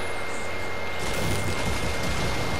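A pickaxe strikes a wooden wall.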